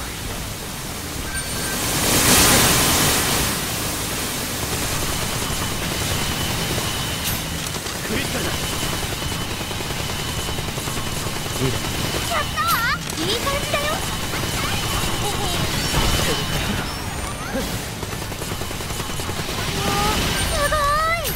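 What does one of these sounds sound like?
Magic spells whoosh and crackle in bursts.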